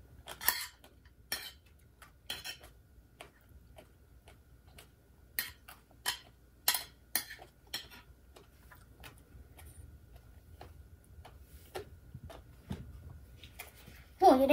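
A woman eats, chewing and slurping close by.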